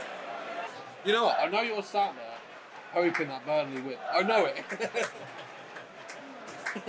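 Men laugh close by.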